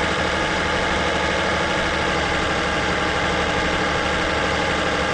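A heavy truck engine drones steadily.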